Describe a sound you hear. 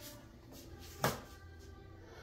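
A plastic bottle clacks as it is set down.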